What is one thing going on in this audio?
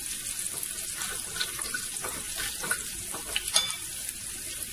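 A spoon clinks as it stirs in a bowl.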